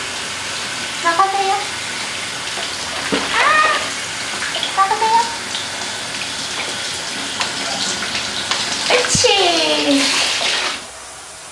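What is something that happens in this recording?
A small dog whines in high, wavering cries.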